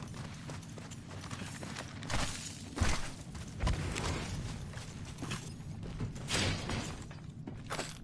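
Footsteps patter quickly over grass and ground.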